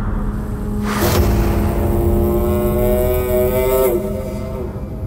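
A woman lets out a low, menacing moan close by.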